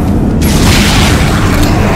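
A heavy gun fires loudly.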